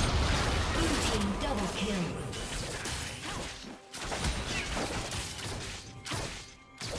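Game spells and weapon hits clash and whoosh in a busy fight.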